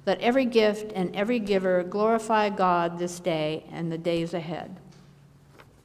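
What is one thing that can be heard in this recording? A woman reads aloud into a microphone in a reverberant room.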